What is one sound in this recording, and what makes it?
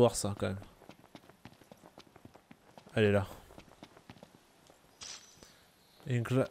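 Footsteps crunch quickly over dry dirt and grass.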